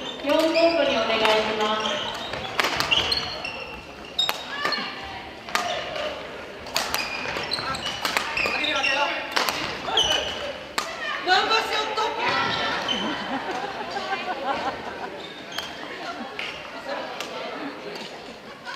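Young players shout and call out loudly in an echoing hall.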